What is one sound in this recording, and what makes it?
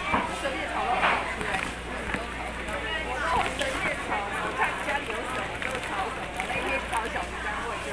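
A paper bag rustles and crinkles as a hand rummages inside.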